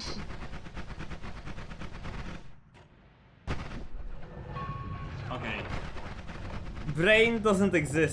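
A crackling energy beam zaps.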